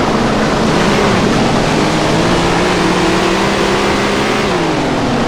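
A racing car engine roars loudly and climbs in pitch as it speeds up.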